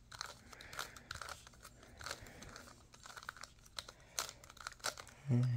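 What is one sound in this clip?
A plastic puzzle cube clicks and clacks as it is turned quickly.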